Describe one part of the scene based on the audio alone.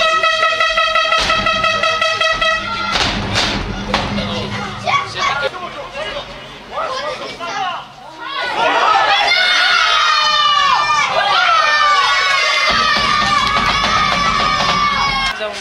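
Football players shout to each other across an outdoor pitch.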